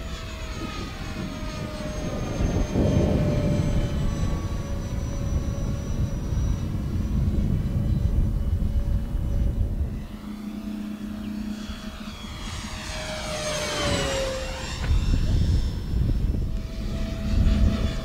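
A model plane's electric motor whines overhead, rising and falling in pitch as it passes.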